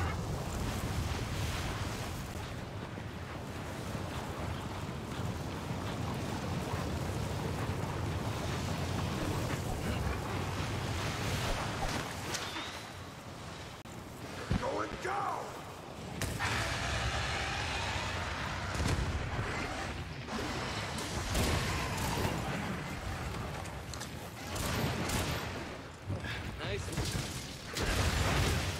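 Blades slash and clang in a fight.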